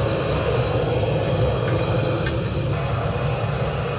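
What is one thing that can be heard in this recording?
A heavy metal furnace door scrapes open.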